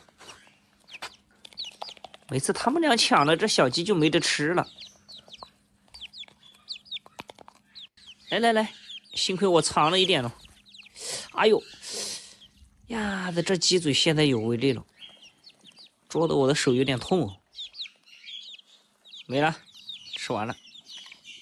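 Chicks peep in high, thin chirps.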